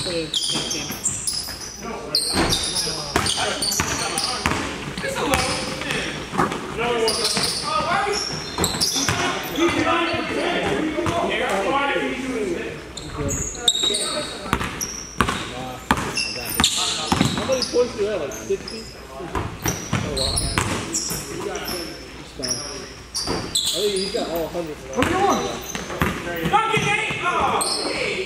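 Young men shout and call out across an echoing gym.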